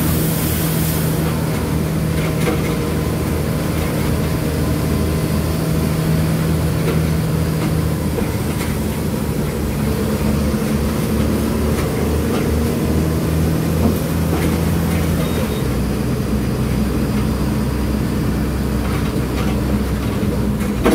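Loose parts of a bus rattle and clatter as it rides.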